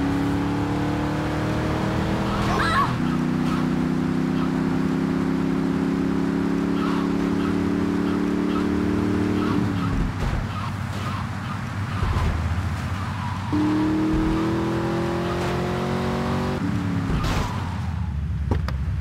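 A car engine revs and shifts through gears as the car speeds along.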